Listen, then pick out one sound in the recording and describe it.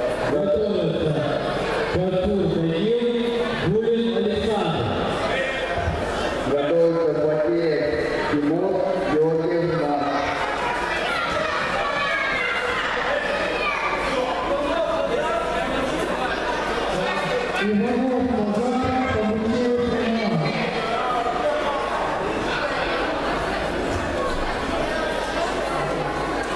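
A crowd of many spectators chatters in a large echoing hall.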